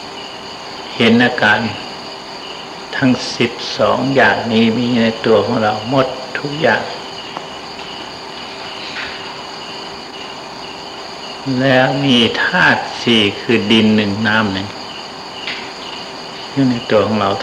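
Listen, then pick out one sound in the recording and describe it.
An elderly man speaks calmly and slowly, with long pauses.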